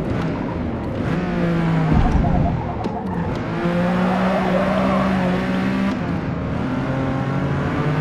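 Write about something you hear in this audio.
A car engine roars, its pitch rising and dropping with gear changes.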